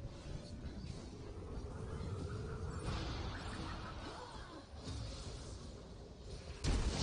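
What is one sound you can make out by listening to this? Game battle effects whoosh and clash as spells are cast.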